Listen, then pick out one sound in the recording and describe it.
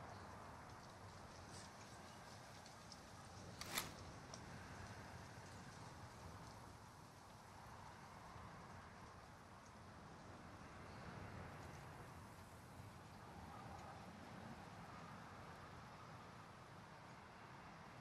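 Wind blows steadily through tall grass and trees outdoors.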